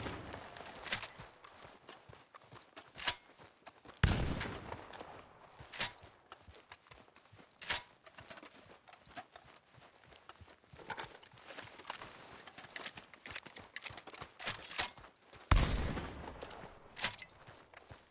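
A shotgun's pump action clacks as it is reloaded.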